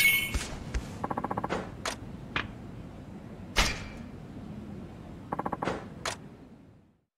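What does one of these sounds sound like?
Short electronic menu blips sound in quick runs.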